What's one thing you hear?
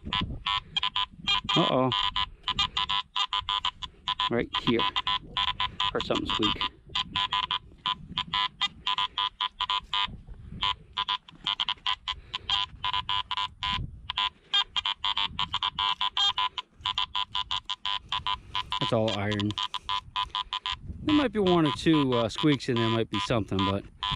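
A metal detector beeps and warbles rapidly as its coil sweeps over the ground.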